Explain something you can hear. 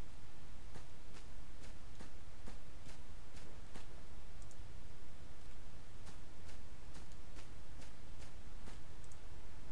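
Footsteps crunch steadily on dry grass and dirt.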